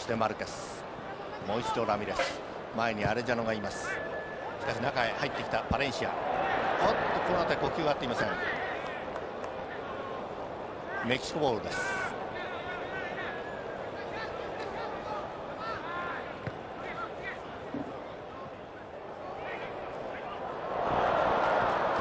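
A large stadium crowd murmurs and cheers steadily outdoors.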